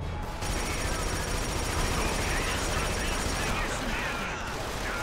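A machine gun fires rapidly in a video game.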